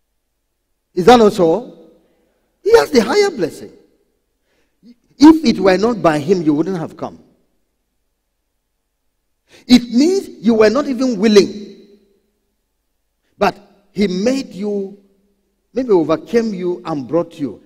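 A man preaches with animation into a microphone, in bursts with pauses.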